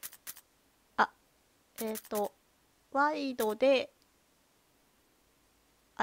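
Short electronic menu blips sound as a selection moves.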